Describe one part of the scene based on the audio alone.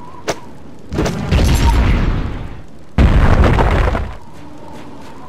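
A bundle of sticks is struck with a loud whooshing burst.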